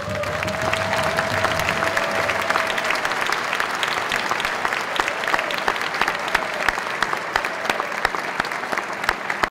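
A large crowd applauds and cheers in a big echoing hall.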